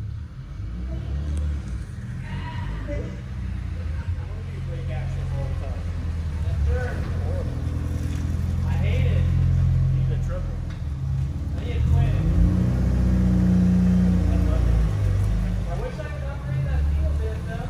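A car engine rumbles low as a car rolls slowly closer.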